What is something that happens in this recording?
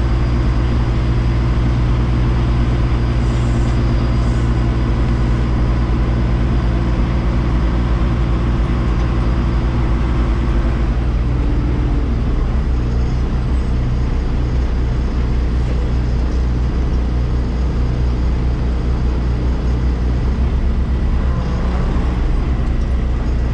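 A truck's diesel engine rumbles steadily close by.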